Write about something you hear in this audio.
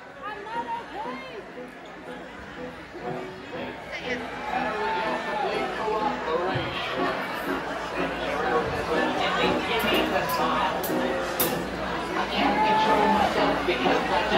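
Electric guitars play loudly through amplifiers.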